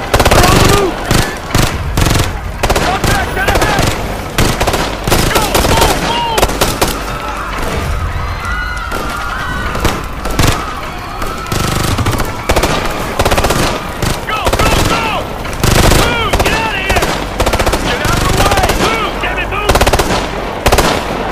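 Rifles fire in sharp, rapid bursts.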